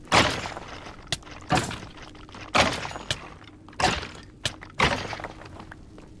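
Sword blows strike a rattling skeleton in quick succession.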